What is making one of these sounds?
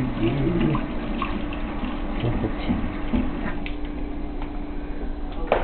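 Tap water runs and splashes into a metal sink.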